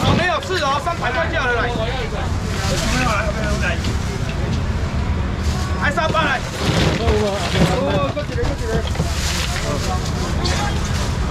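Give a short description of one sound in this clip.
Men call out loudly nearby.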